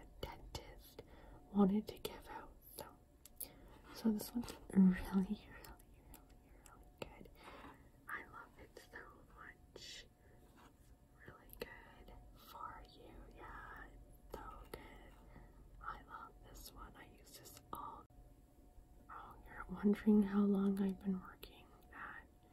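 A young woman whispers softly, close to a microphone.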